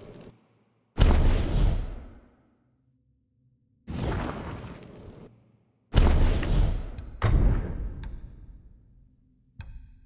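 Soft whooshes sound as a game menu opens and closes.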